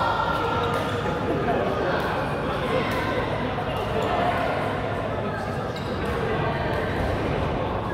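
Badminton rackets strike shuttlecocks with sharp pops.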